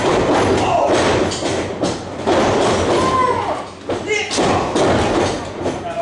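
A wrestler's body thuds onto a wrestling ring mat.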